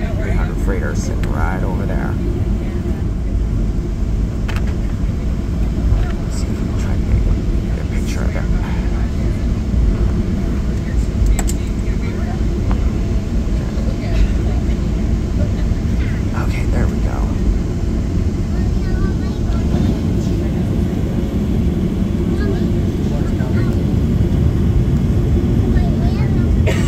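A jet engine rumbles steadily inside an airplane cabin.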